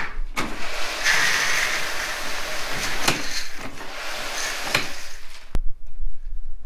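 Grain pours and rattles into a bucket.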